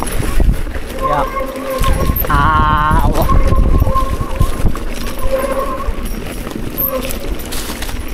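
A mountain bike rattles and clatters over a rocky trail.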